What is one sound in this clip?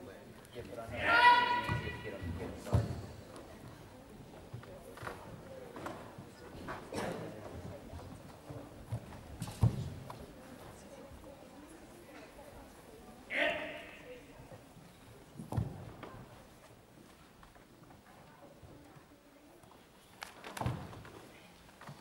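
Bare feet thump and slide on a wooden floor.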